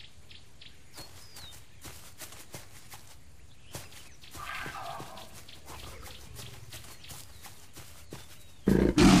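Heavy paws patter quickly on dirt.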